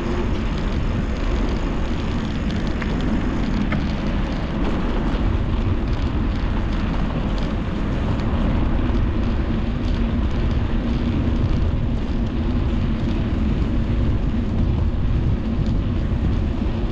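Wind buffets a microphone steadily.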